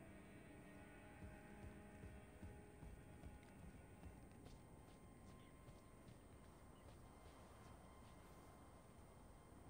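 Armoured footsteps run quickly over wood and stone.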